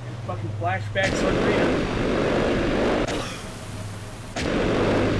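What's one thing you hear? A burst of flame roars and hisses.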